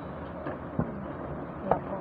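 A hand handles small objects with soft knocks and bumps.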